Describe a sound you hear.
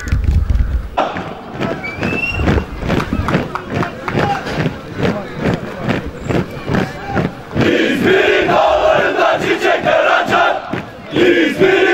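Many boots stamp in unison on pavement in a steady marching rhythm.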